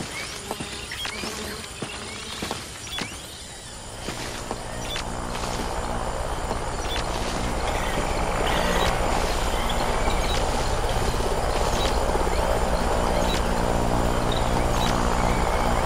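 Leaves and branches rustle as someone pushes through dense undergrowth.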